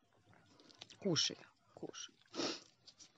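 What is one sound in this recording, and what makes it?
A goat bites and crunches a cucumber up close.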